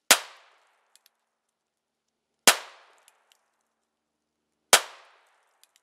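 Gunshots crack sharply outdoors, a few seconds apart.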